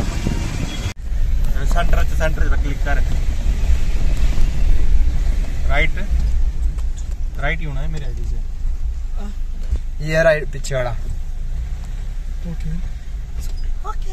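A car engine hums low and steady from inside the car as it drives.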